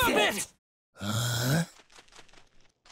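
A young man grunts in surprise.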